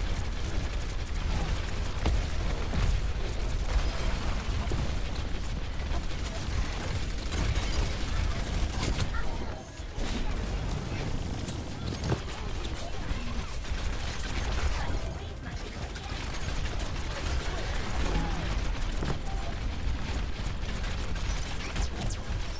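Rapid game gunfire pops and crackles.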